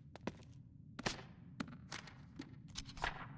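Pages of a notebook rustle as they turn.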